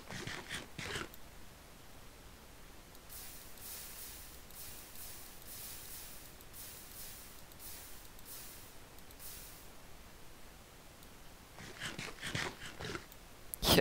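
Blocks crunch repeatedly as they are broken.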